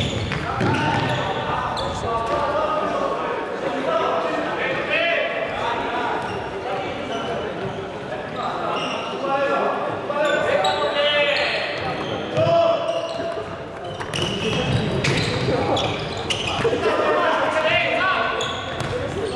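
A ball thuds when kicked.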